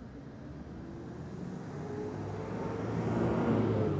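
A vehicle engine rumbles nearby as it approaches.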